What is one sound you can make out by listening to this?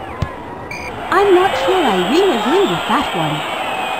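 A crowd cheers and murmurs in the background.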